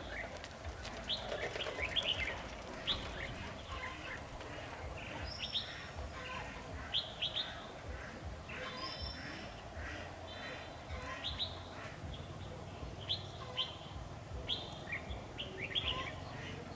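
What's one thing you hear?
Small birds chirp and trill repeatedly in quick bursts.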